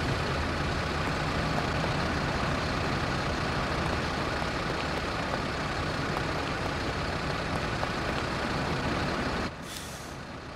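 A bus engine idles nearby with a low steady rumble.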